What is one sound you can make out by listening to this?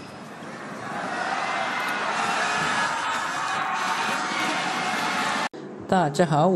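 A crowd cheers and applauds in a large hall.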